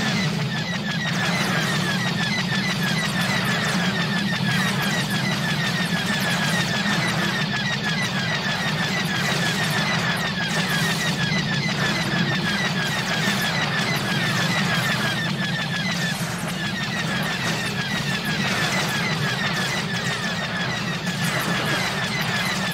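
Laser blasts fire rapidly over and over.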